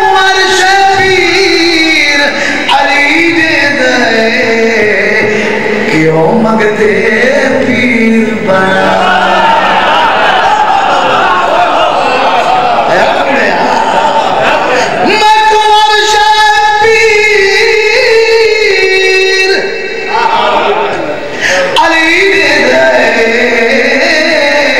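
A man sings a mournful chant loudly through a microphone.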